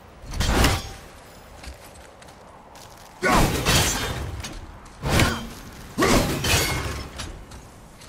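An axe is thrown and whooshes through the air.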